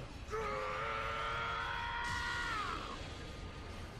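A man lets out a long, powerful roar.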